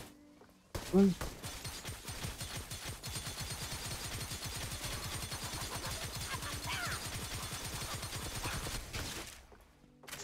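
Quick footsteps patter on the ground.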